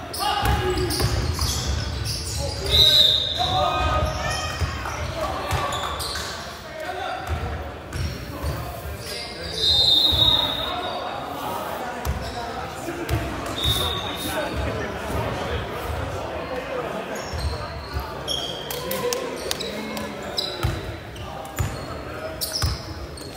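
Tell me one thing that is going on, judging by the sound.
Spectators nearby talk and call out, echoing in a large hall.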